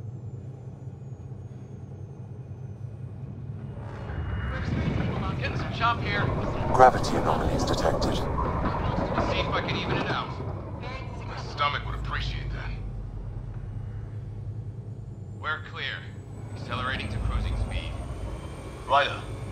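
A spaceship's engines hum low and steadily.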